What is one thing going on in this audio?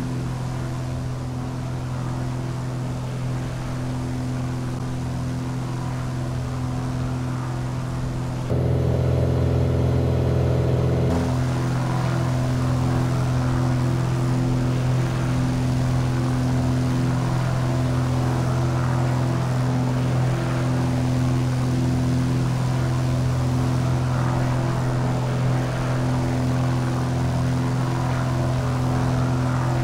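A small propeller plane's engine drones steadily, louder for a moment from inside the cabin.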